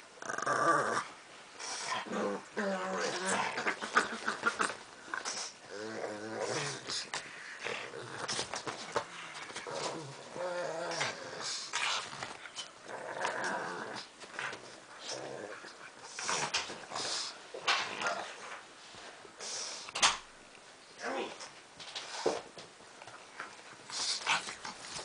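A plush toy rustles as dogs tug at it.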